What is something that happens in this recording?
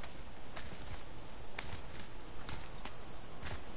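Hands grip and scrape on rock in a steady climbing rhythm.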